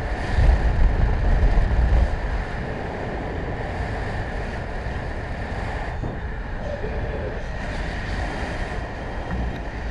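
Wind rushes steadily past a microphone outdoors, gusting harder at first.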